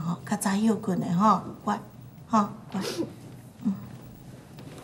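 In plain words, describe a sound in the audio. An elderly woman speaks softly and with concern, close by.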